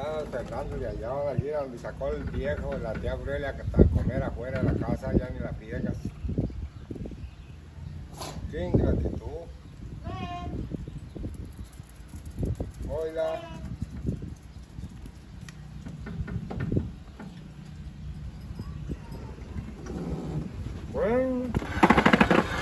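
An elderly man speaks calmly nearby outdoors.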